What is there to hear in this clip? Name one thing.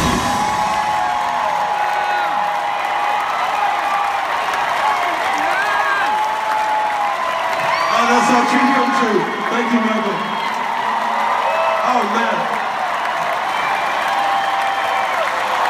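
A large crowd cheers and sings along in the distance.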